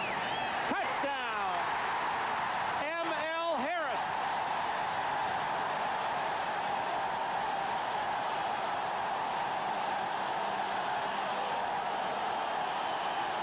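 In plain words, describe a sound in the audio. A large crowd roars and cheers loudly outdoors.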